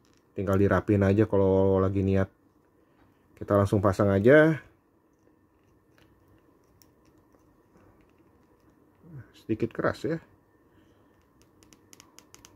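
Small plastic parts click and rub together.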